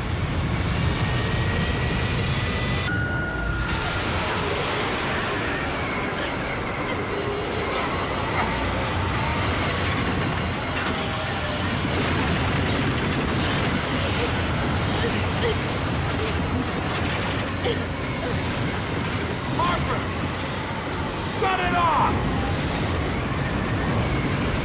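A loud, steady roar and rumble of wind and blasting air fills the space.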